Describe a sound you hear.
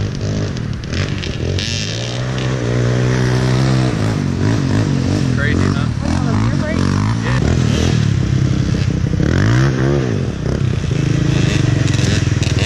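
A quad bike engine idles and revs loudly close by.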